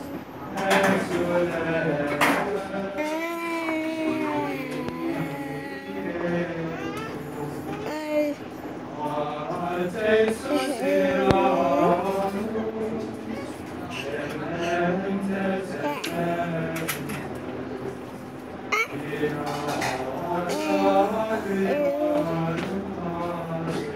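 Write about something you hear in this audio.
A choir of young men sings together in a room.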